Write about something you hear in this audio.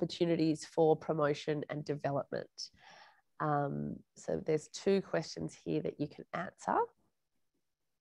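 A woman speaks clearly and warmly into a close microphone.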